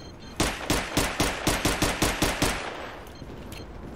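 A pistol fires a rapid string of loud shots that ring out and fade.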